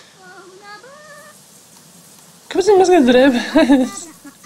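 A shower runs with a soft hiss of water.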